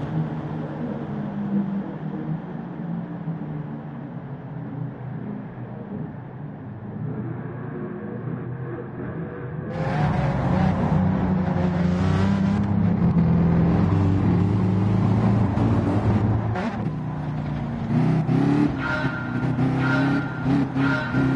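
Racing car engines roar and whine as the cars speed along the track.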